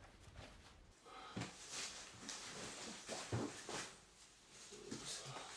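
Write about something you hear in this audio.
A man rustles through a bag, with soft thuds.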